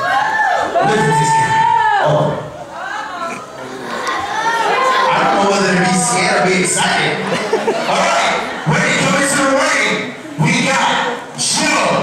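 A man speaks loudly into a microphone over a loudspeaker, announcing with energy in an echoing hall.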